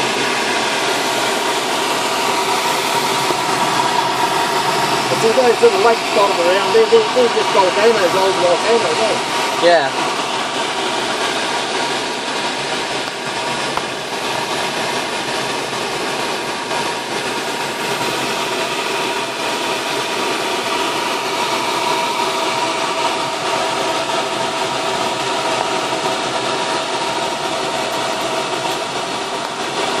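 An aircraft engine drones steadily from inside a small cabin.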